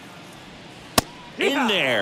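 A ball smacks into a catcher's mitt.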